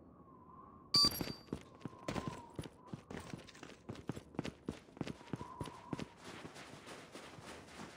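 Footsteps thud quickly as a soldier runs.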